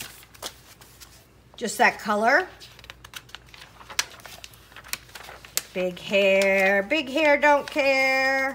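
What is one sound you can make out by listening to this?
Magazine pages rustle and flap as they are turned.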